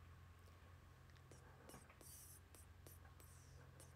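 A young woman speaks softly and briefly, close by.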